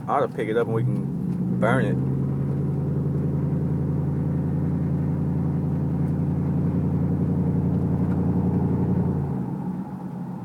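A car engine revs loudly with a low drone, then eases off.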